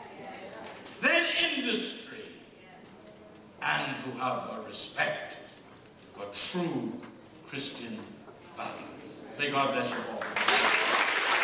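An elderly man speaks forcefully into a microphone in a large echoing hall.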